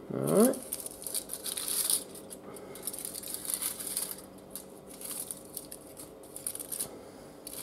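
Aluminium foil crinkles and rustles between fingers.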